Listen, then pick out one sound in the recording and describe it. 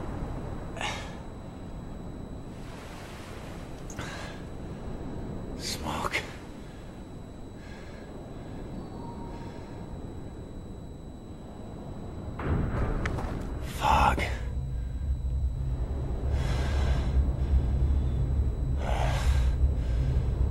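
A young man speaks quietly and calmly.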